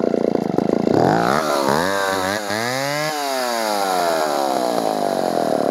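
A chainsaw engine revs up and down sharply, then slowly winds down.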